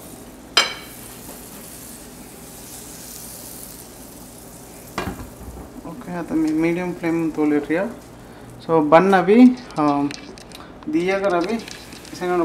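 Butter sizzles softly in a hot pan.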